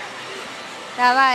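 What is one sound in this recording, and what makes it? A young woman speaks brightly into a microphone.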